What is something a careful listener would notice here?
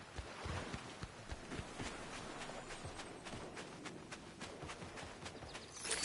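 Footsteps run softly over sand.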